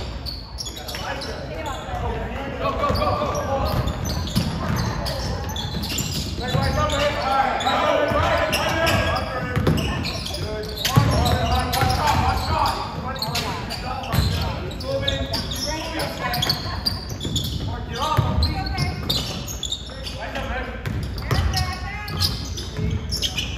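Spectators and players shout and call out in a large echoing gym.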